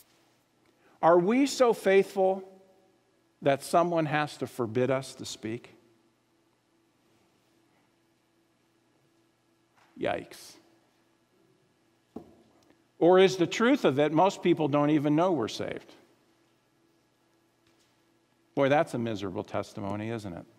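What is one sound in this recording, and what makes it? A middle-aged man speaks with emphasis into a microphone, with pauses between phrases.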